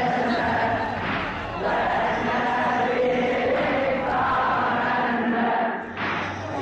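A group of young men chant together loudly outdoors.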